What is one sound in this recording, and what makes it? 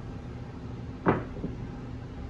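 Casino chips clack together on a felt table.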